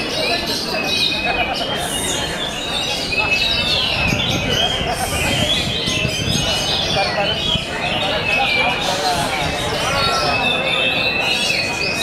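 A caged songbird sings loud, varied whistling trills close by.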